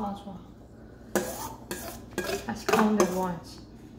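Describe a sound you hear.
A whisk scrapes against a metal bowl.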